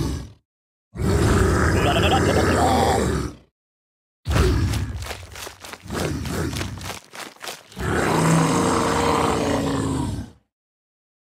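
A dinosaur roars loudly.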